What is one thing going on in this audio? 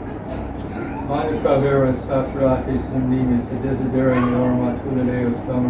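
A man chants in a low, steady voice in a reverberant hall.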